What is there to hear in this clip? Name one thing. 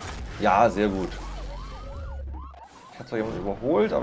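A car crashes with a loud metallic smash.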